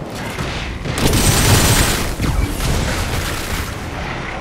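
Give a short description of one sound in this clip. A large fiery explosion booms.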